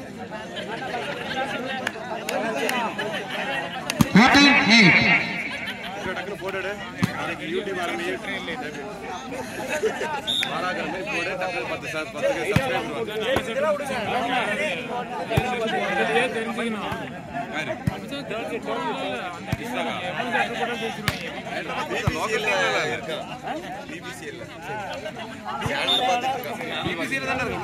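A crowd of young men shout and chatter outdoors.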